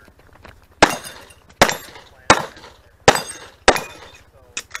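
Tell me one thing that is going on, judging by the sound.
Gunshots crack loudly outdoors, one after another, with a short echo.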